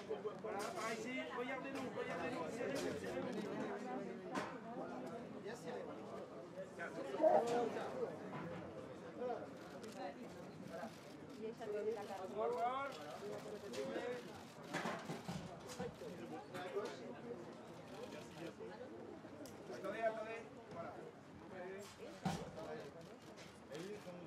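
Photographers, mostly men, call out and chatter close by.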